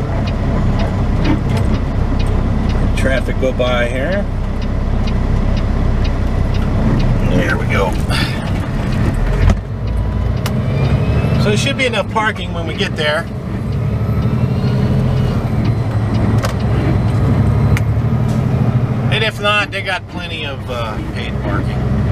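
A semi truck's diesel engine rumbles as the truck drives along a road.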